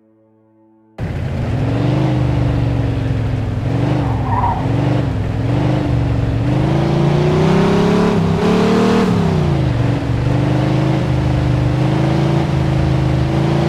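A car engine hums and rises and falls in pitch as the car drives along.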